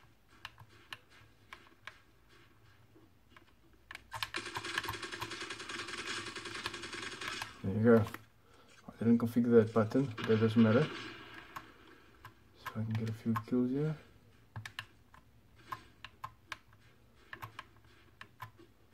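Controller buttons click softly under quick presses.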